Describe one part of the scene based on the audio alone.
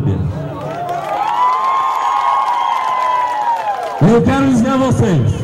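A man sings loudly through a microphone, holding a long note.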